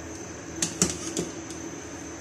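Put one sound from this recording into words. A spoon scrapes against a metal pot as thick soup is stirred.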